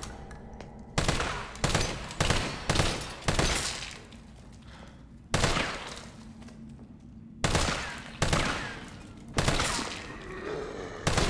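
Gunshots boom one at a time, with a ringing echo after each.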